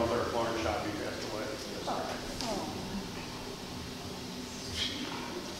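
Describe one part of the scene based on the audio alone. An elderly man speaks calmly through a headset microphone in a large echoing hall.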